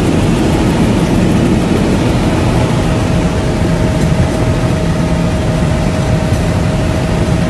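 An aircraft engine drones loudly and steadily inside a small cabin.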